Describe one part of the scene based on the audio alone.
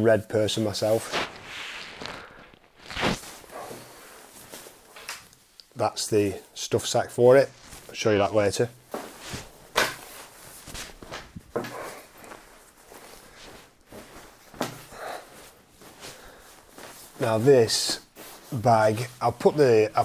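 A nylon sleeping bag rustles as it is handled.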